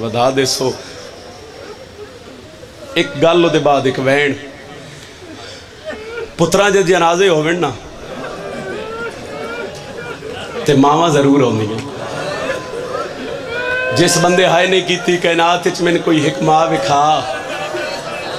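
A man chants and sings with emotion into a microphone, heard through loudspeakers in an echoing space.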